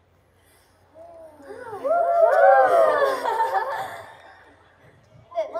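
Young women shout together into microphones.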